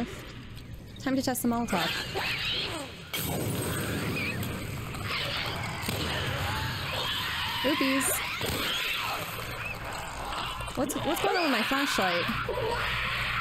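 A young woman talks into a close microphone, her voice animated.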